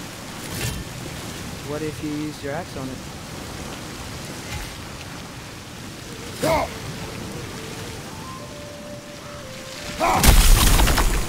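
Water gushes and hisses steadily from a geyser.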